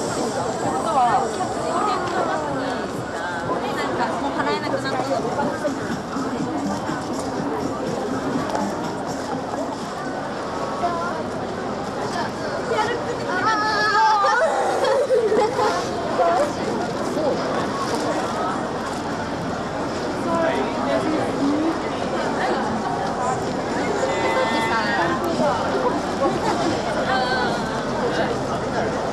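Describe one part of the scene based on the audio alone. Footsteps of many people shuffle past on pavement.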